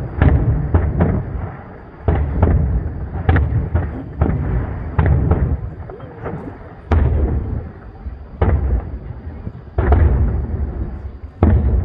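Firework sparks crackle and fizz.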